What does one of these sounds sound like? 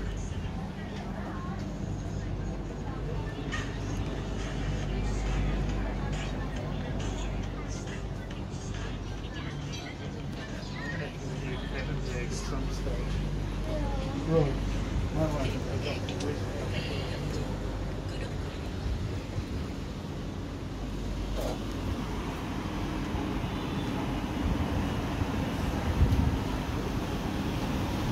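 Voices murmur faintly in the background.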